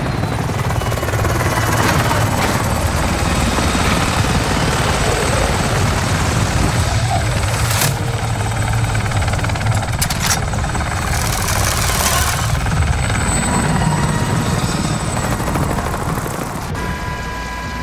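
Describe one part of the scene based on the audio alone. A helicopter's rotor thumps and roars steadily overhead.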